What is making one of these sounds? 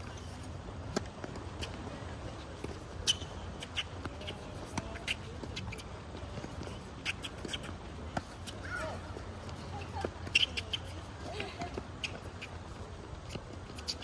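A tennis ball is struck with a racket in a rally.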